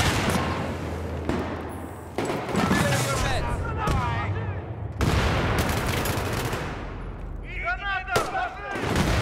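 Gunshots bang loudly and echo.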